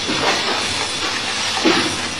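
Metal coins clink and jingle as they are handled.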